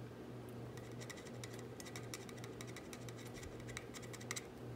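A screwdriver tip scrapes and clicks against metal.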